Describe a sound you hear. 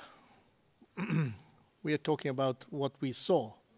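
A middle-aged man speaks firmly into a microphone.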